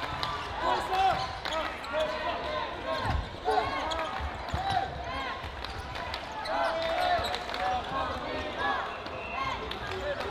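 A ball thuds against the floor and players.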